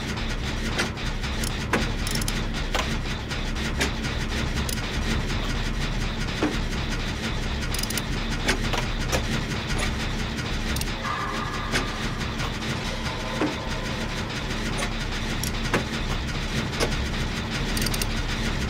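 Metal parts clank and rattle.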